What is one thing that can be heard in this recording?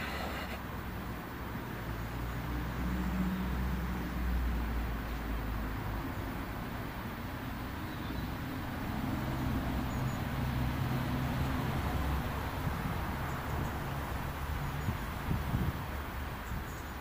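A man close by hums a low, wavering drone that fades out.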